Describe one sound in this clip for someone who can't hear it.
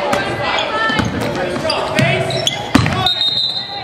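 A basketball thumps on the floor.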